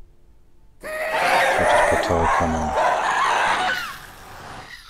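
A magical portal swirls with a loud, rushing whoosh.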